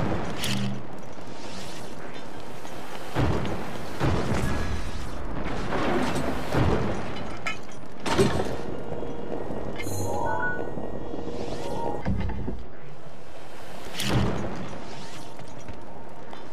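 Lava rumbles and hisses steadily.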